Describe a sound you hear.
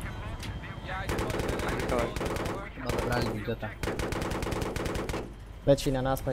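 A helicopter cannon fires in rapid bursts.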